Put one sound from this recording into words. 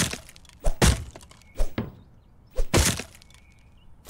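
An axe smashes into wooden fence rails with loud cracks.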